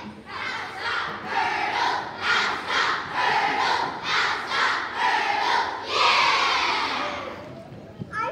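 A large choir sings together in a big echoing hall.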